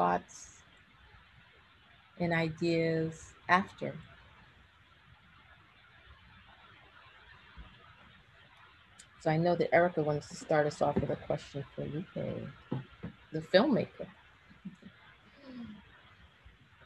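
A woman speaks calmly over an online call, with long pauses.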